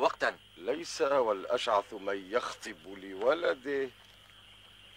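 A man speaks loudly and forcefully nearby.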